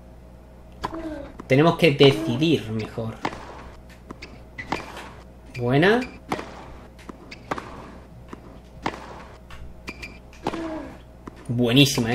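A tennis ball is hit back and forth with rackets.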